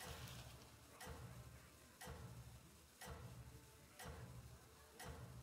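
A game timer ticks at a steady pace.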